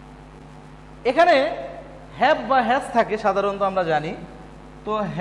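A man speaks clearly and with emphasis, close by.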